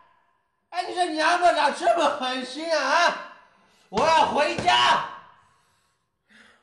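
A man shouts angrily and pleads up close.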